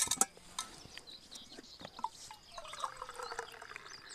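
A man pours liquid from a kettle into a cup.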